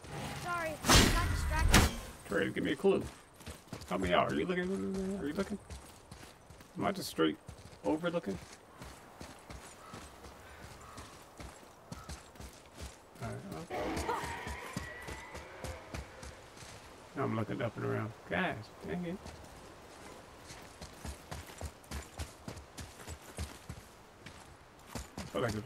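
Footsteps crunch through grass and over stone.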